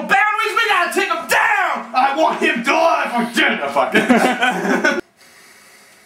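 A young man shouts angrily at close range.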